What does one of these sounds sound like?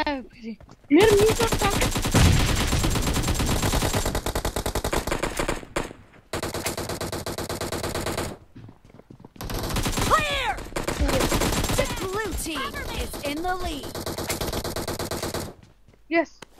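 Rapid bursts of gunfire rattle close by.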